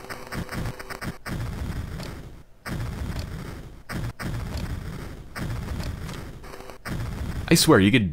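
A cartoon explosion bursts.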